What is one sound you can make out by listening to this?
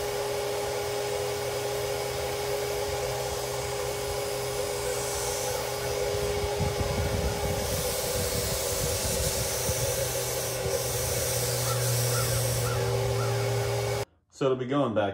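An air compressor hums steadily.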